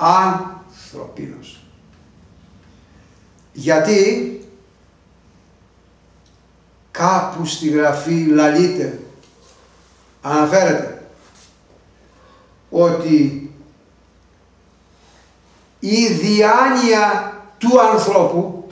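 An elderly man speaks with animation in bursts, close to a microphone, pausing between phrases.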